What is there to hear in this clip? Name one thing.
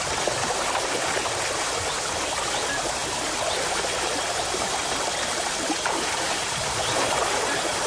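A shallow stream gurgles and splashes steadily over rocks.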